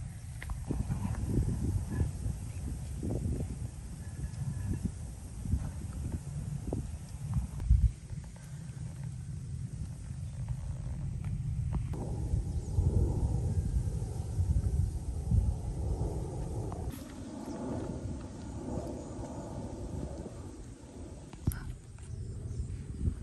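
Footsteps crunch softly on dry earth outdoors.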